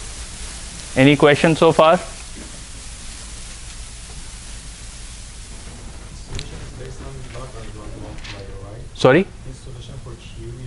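A man speaks aloud in an echoing room.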